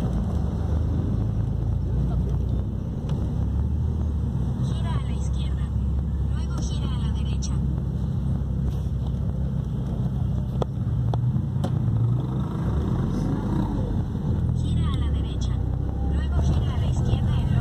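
A car engine hums steadily from inside the car as it drives along a street.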